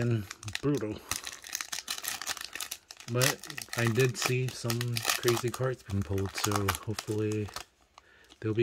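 A foil wrapper crinkles and rustles as it is handled and torn open.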